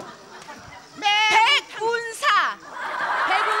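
A woman shouts excitedly into a microphone.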